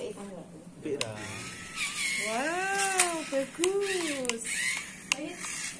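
A toy car plays a tinny electronic siren.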